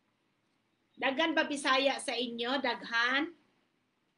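A woman speaks with animation through a phone's microphone.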